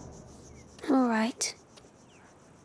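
A young boy answers softly.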